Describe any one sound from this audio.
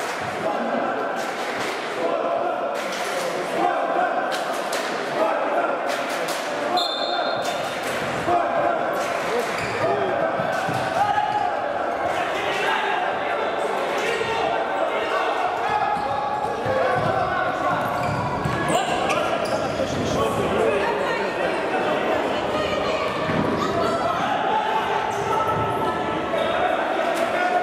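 A futsal ball is kicked in an echoing indoor hall.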